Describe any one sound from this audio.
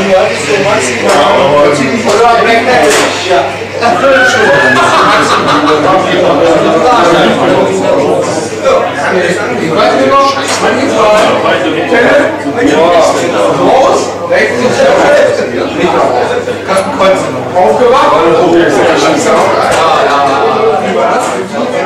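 Many men talk and chatter at once in a lively room.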